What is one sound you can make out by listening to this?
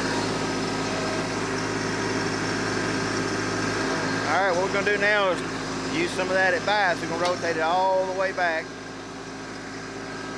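A tractor engine runs with a steady low rumble.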